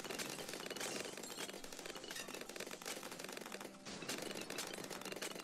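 Rapid popping sound effects crackle without pause.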